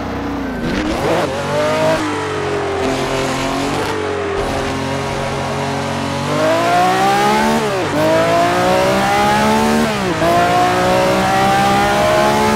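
A V12 Formula 1 car's engine accelerates at full throttle, shifting up through the gears.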